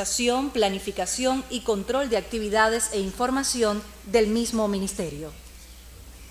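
A man speaks over a loudspeaker in a large hall.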